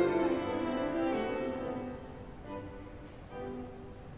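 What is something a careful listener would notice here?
A violin plays the last notes of a piece in a large echoing hall.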